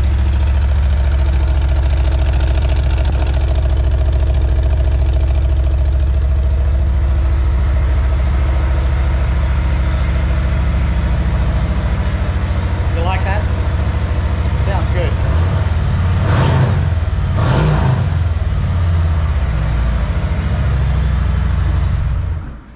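A motorcycle engine idles with a loud, deep, steady throb.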